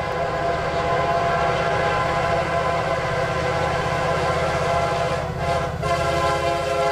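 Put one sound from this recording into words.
A diesel locomotive engine roars and throbs close by.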